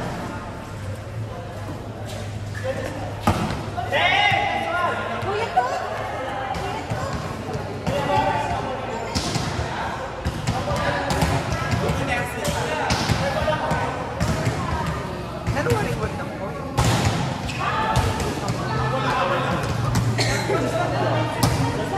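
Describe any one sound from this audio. Young women call out and shout during play in an echoing hall.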